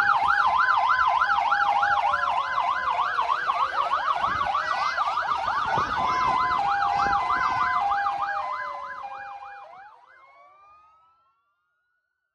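Fire engine sirens wail loudly close by, then fade away.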